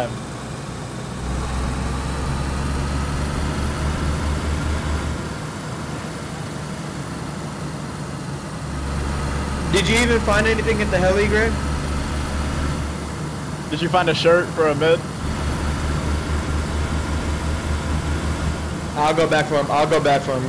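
A car engine hums steadily as a car drives along a dirt road.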